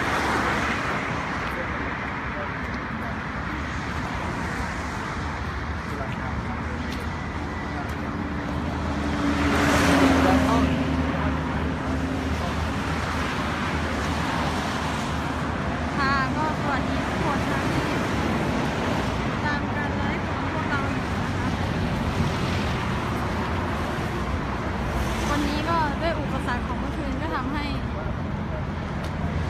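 Traffic rushes past on a nearby road.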